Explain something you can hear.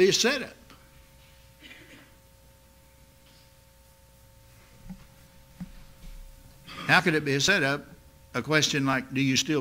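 An elderly man speaks slowly and earnestly into a microphone, with long pauses.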